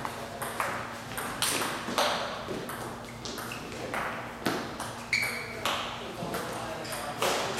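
A ping-pong ball clicks rapidly back and forth off paddles and a table.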